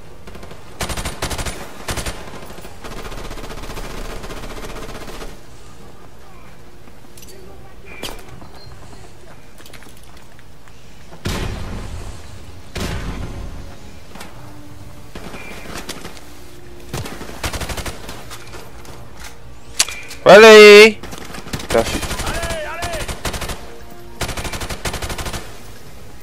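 Gunshots fire in short bursts, echoing in a tunnel.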